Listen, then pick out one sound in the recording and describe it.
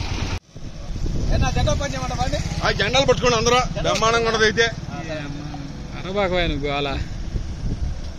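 A group of men shout slogans together outdoors.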